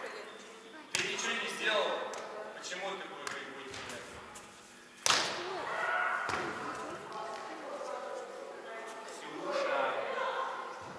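Young adults call out and talk across a large echoing hall.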